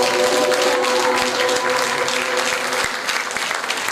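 Musicians play a held chord that then stops.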